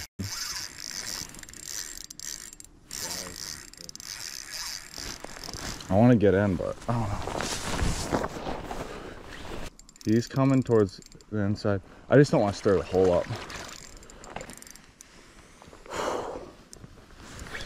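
A fishing reel whirs and clicks as its handle is turned.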